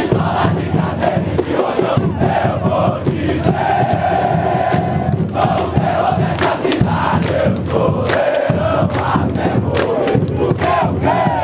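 A large crowd of fans sings and chants loudly together outdoors.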